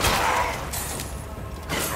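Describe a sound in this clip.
A pistol is reloaded with a metallic click.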